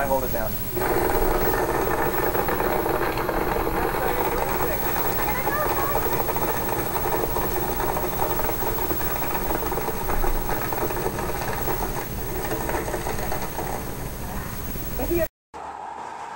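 A blender whirs loudly, crushing ice.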